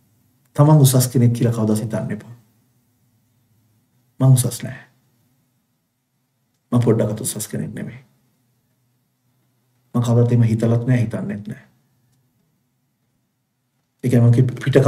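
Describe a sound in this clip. A middle-aged man speaks fervently into a close microphone, in short bursts with pauses.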